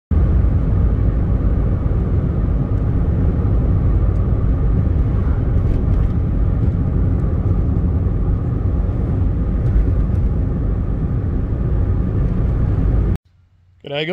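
A car's engine and tyres rumble steadily on the road from inside the car.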